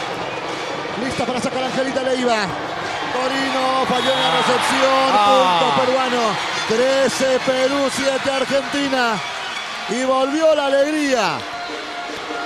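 A crowd chants in rhythm.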